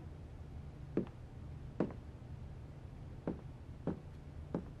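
Sneakers step across a wooden floor.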